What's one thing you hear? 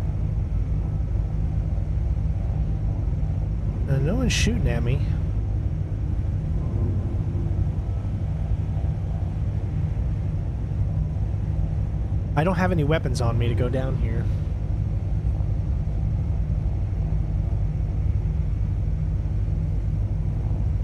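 A spacecraft engine hums with a steady low drone.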